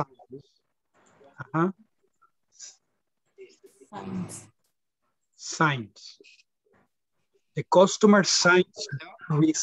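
A man speaks calmly, heard through an online call.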